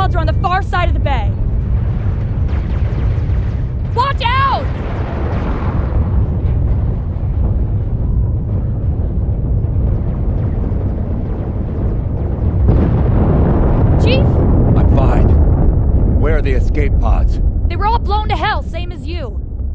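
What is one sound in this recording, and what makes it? A deep, loud rumbling roar goes on throughout.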